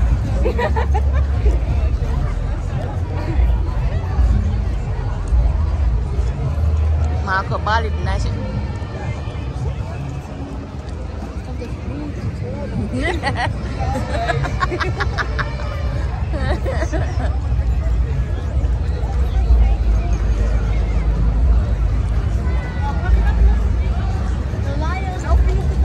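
A crowd of people chatters and calls out nearby, outdoors.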